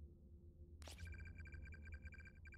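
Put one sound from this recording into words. Rapid high beeps tick as text types out.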